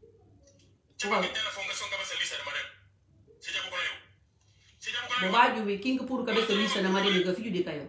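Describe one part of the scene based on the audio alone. A middle-aged woman speaks forcefully and close up.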